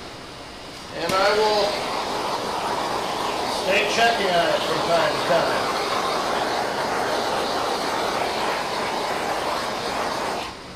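A blowtorch roars with a steady hiss.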